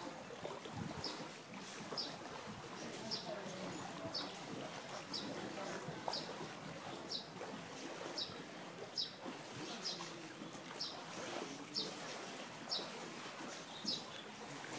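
Water laps and splashes gently.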